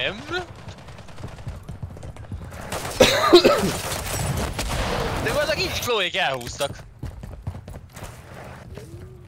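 Rapid gunfire crackles in bursts.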